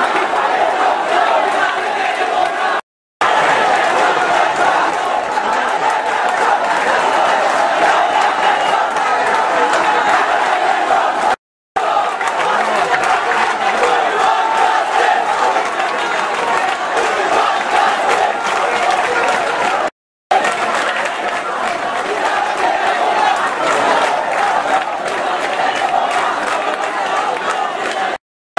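A large crowd of young people shouts and chatters loudly outdoors.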